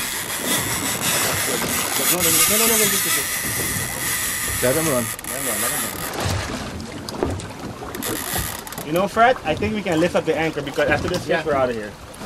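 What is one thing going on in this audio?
Wind blows across the water in open air.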